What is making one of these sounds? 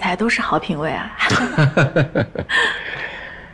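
A middle-aged man laughs heartily.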